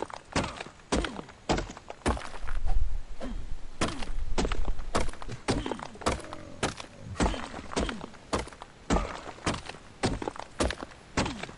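A stone hatchet strikes rock over and over with sharp knocks.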